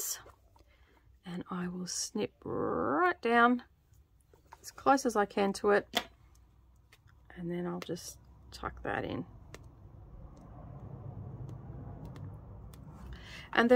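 Soft fabric rustles as hands fold and pin cloth.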